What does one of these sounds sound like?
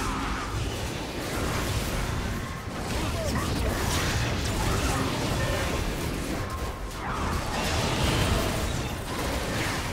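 Spell effects and weapon hits crash and whoosh in a fast game battle.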